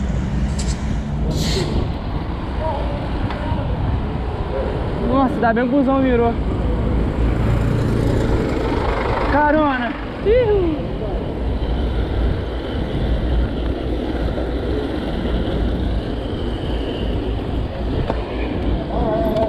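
Wind buffets the microphone while cycling along a street.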